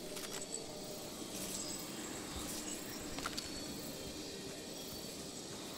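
Footsteps run quickly over soft grass.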